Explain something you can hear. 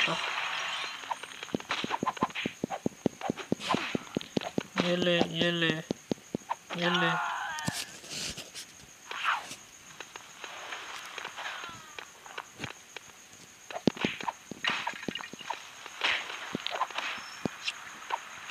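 Quick game punches and smashing effects clatter in rapid bursts.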